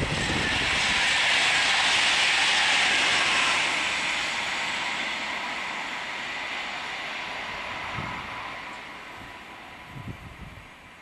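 A high-speed train rushes past close by with a loud whoosh that slowly fades.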